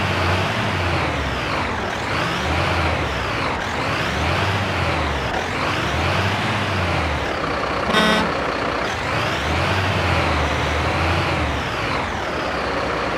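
A fire engine's siren wails.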